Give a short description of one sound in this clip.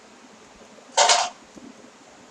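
Gravel crumbles and breaks apart.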